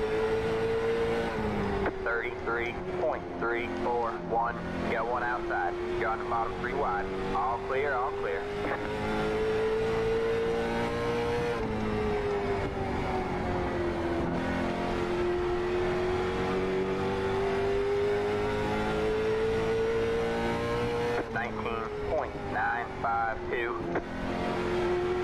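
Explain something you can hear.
A racing car engine drones steadily, rising and falling in pitch.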